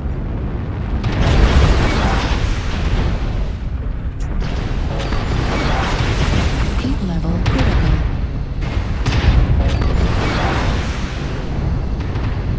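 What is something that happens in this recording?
Laser weapons fire in long buzzing bursts.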